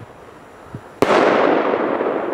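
A firework shot bangs loudly.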